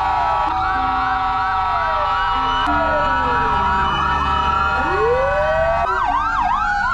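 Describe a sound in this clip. Several emergency sirens wail and yelp loudly nearby.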